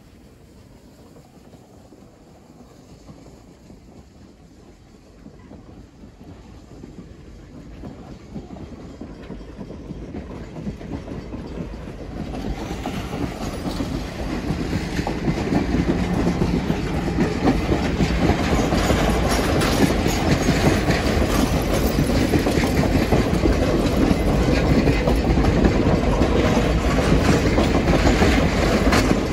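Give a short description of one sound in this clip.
A passenger train rolls slowly past close by, its rumble growing louder and heavier.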